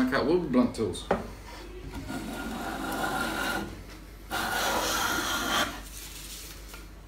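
A hand plane shaves wood with rasping strokes.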